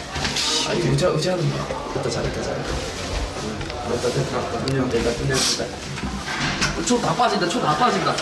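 A second young man talks quickly and reassuringly close by.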